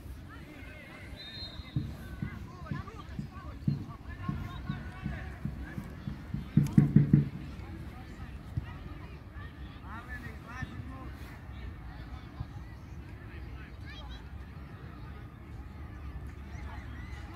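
Children shout and call out outdoors across an open field.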